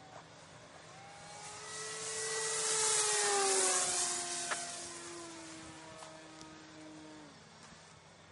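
An aircraft flies overhead, its roar swelling and then fading as its pitch slides down.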